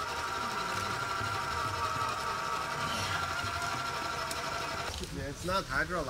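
An electric winch whirs steadily.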